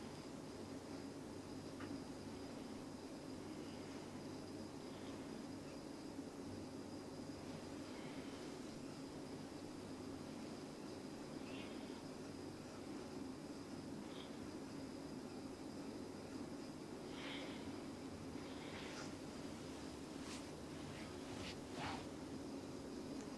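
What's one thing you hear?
Fingers softly rub and scratch through hair.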